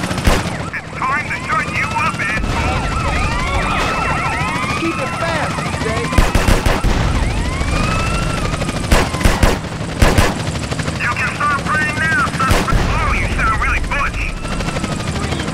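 Police sirens wail up and down.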